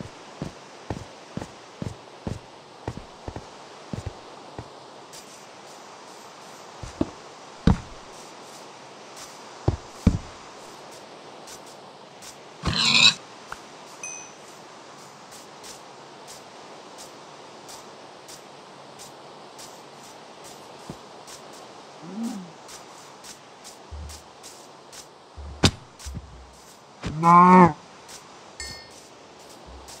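Blocks are placed and broken with short knocks.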